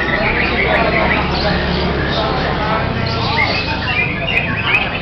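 A songbird chirps and trills busily nearby.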